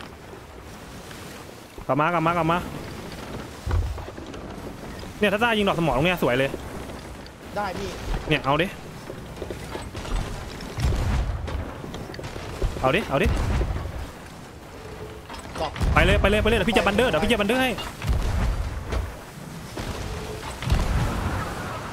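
Ocean waves wash and splash against a ship.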